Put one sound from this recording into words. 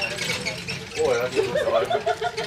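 Men and women chatter nearby outdoors.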